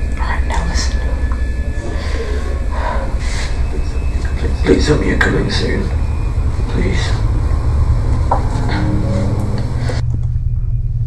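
A young boy talks quietly on a phone, close by.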